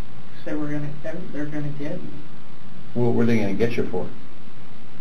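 A young man speaks quietly and briefly.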